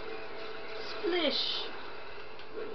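An explosion bursts loudly from a video game.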